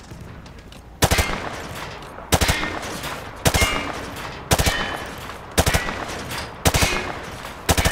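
A rifle fires in bursts of loud gunshots that echo outdoors.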